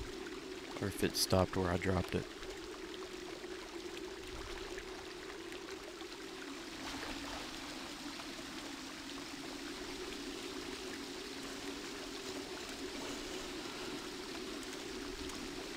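Water flows and rushes steadily through a channel.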